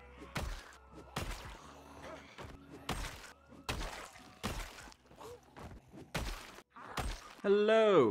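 Heavy blows thud again and again at an uneven pace.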